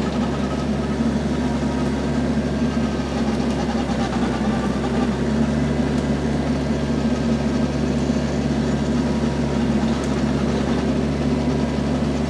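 A tiller churns and grinds through the soil.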